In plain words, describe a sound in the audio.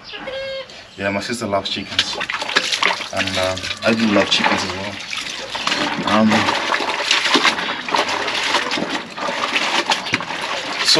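Clothes splash and swish in a basin of water.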